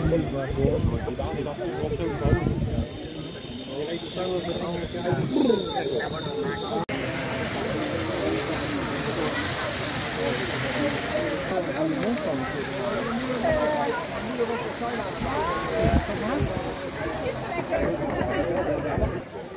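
People chatter nearby outdoors.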